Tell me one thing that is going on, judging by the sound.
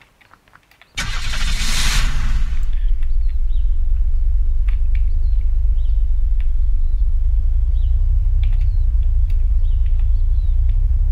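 A vehicle engine starts with a burst and rumbles steadily at a low pitch.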